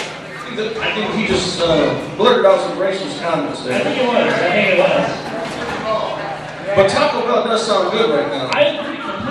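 A man speaks loudly with animation in an echoing room.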